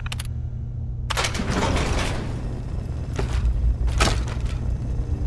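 Keys clatter and a computer terminal clicks.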